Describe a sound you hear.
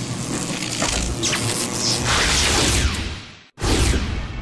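Electricity crackles and zaps loudly.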